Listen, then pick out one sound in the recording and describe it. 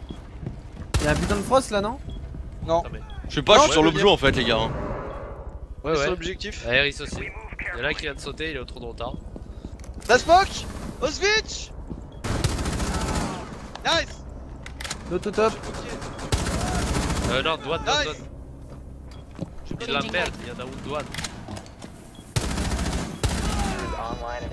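Gunshots from a game crack in short bursts.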